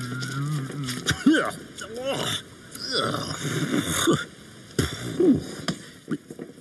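A cartoon man grunts and mumbles with exaggerated vocal noises.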